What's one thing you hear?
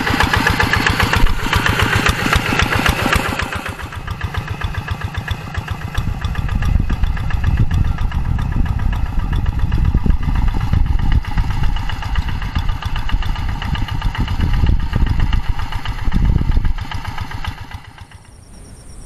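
A small tractor engine chugs loudly nearby.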